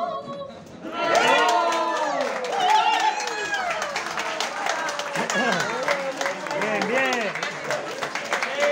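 A man claps his hands in rhythm.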